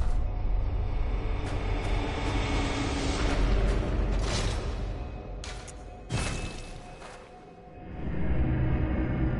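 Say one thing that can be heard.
Footsteps scuff across stony ground in an echoing cave.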